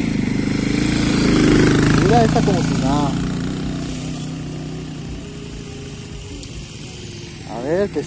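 A motorcycle engine rumbles and fades as the bike rides away.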